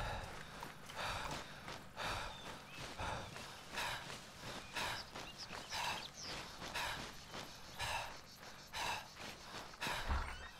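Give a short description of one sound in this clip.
Footsteps crunch through dry grass at a steady walking pace.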